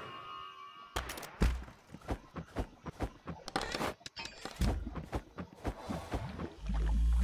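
Game menu sounds click and chime in quick succession.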